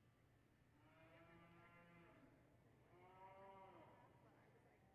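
A cow moos loudly in a large echoing hall.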